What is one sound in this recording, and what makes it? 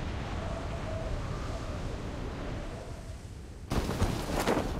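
Wind rushes steadily past during a fall through the air.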